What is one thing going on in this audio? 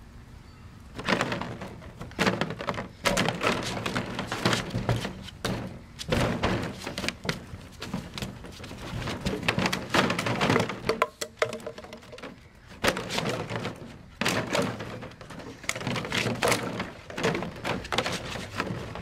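Plastic bottles clatter and crinkle as a dog paws through them.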